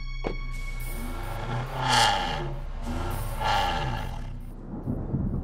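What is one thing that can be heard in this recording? An engine revs up and down.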